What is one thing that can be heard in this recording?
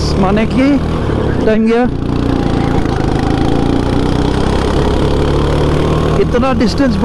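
A kart engine drones loudly and steadily up close.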